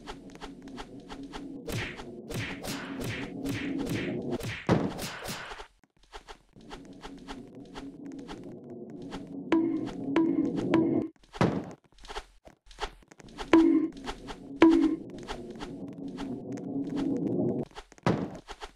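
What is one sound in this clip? Upbeat music plays with a steady beat.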